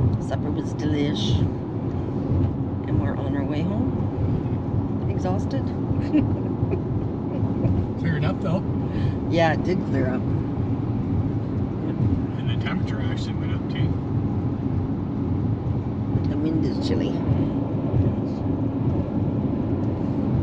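A car engine and tyres hum steadily on a road.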